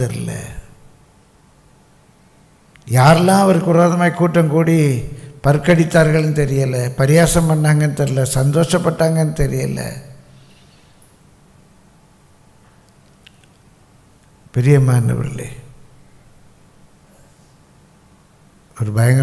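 An elderly man speaks slowly and earnestly into a microphone, with pauses.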